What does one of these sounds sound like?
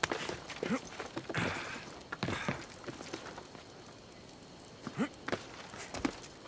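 Hands and feet scrape and thud on stone while climbing a wall.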